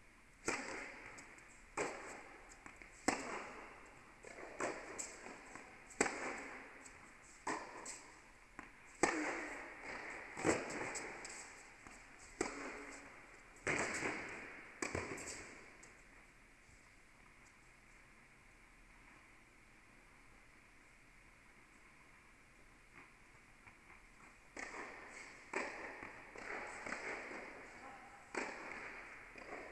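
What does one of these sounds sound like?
Tennis balls are struck hard with rackets, echoing through a large indoor hall.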